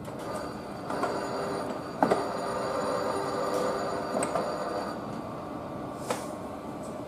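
Train wheels click and clack over the rail joints.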